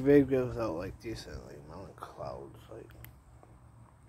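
A man speaks casually, close to the microphone.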